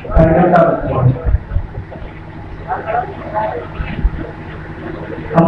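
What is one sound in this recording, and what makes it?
An elderly man speaks into a microphone over a loudspeaker, addressing a crowd.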